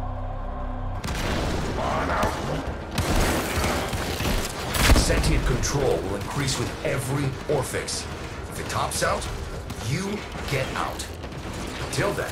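Weapons fire in rapid bursts with loud blasts and crackling impacts.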